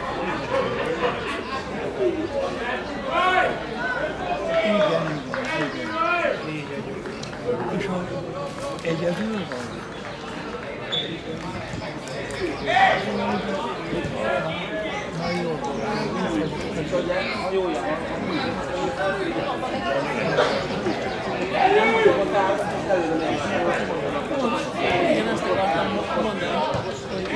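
Men call out to each other outdoors on a sports field.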